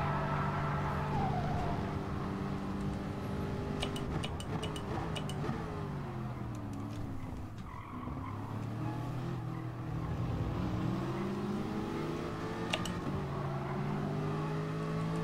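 A racing car engine roars steadily, its pitch dropping while braking and rising as it speeds up again.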